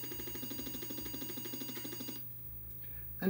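A computer emits a steady buzzing tone.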